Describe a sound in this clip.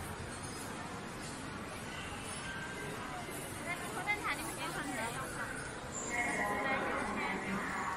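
Voices murmur and chatter in a large echoing hall.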